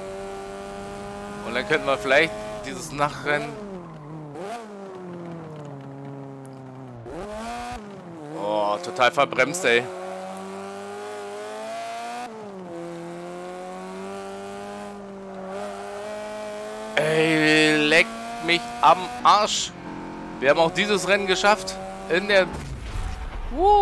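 A racing car engine revs high, drops and climbs again.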